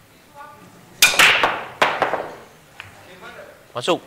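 Pool balls clack loudly as a rack is broken.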